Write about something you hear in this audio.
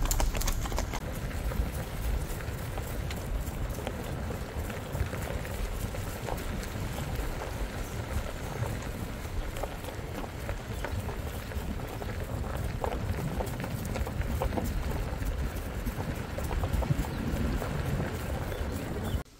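A horse's hooves thud softly on grass at a steady trot.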